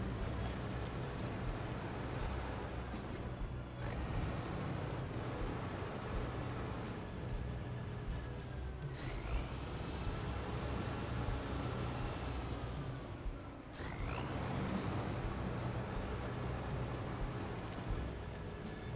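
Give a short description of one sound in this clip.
A heavy truck engine rumbles low and steady, now and then revving up.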